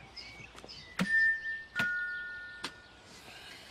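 A doorbell rings with a two-note chime.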